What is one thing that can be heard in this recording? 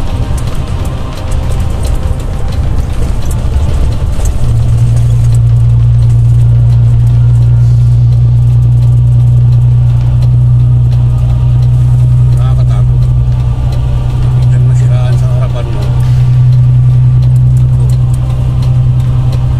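A vehicle's engine drones steadily from inside the cab.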